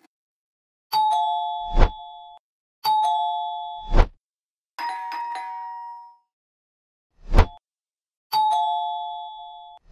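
A doorbell chimes repeatedly.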